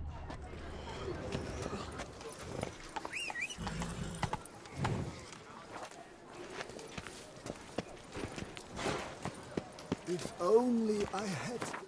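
Footsteps tap on a stone pavement.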